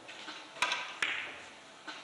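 Billiard balls click against each other on the table.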